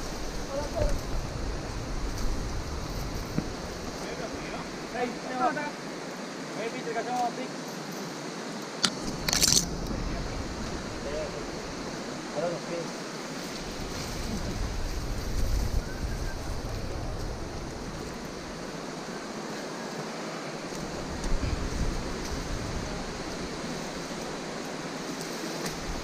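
Footsteps scuff and crunch on rock and dry ground.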